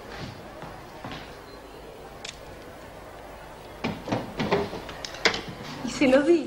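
A middle-aged woman speaks.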